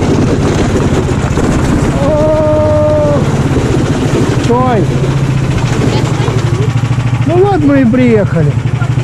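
A towed sled scrapes over packed snow.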